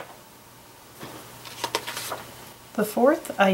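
A sheet of paper rustles as it is lifted.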